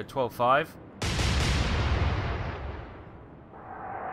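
Heavy guns fire with deep, booming blasts.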